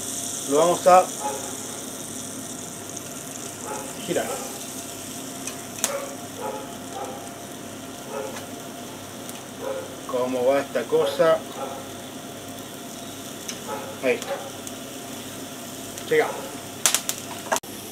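Metal tongs clink against a grill.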